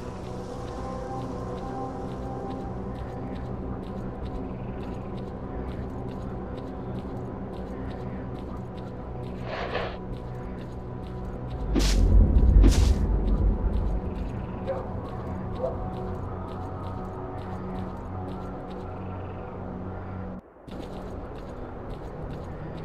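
Footsteps crunch steadily on dry ground.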